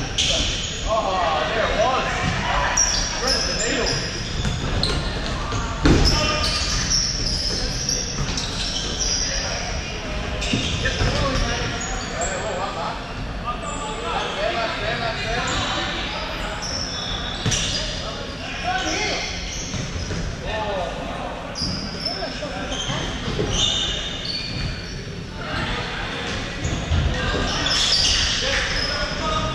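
Shoes squeak sharply on a wooden court in a large echoing hall.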